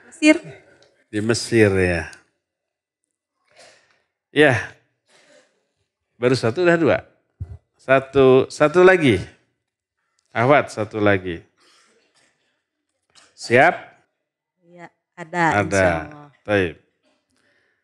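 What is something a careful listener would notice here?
A middle-aged man speaks calmly and with animation into a close microphone, with pauses between phrases.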